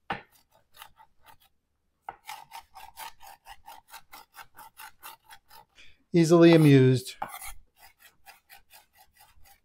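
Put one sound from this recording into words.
A knife chops rapidly on a wooden cutting board.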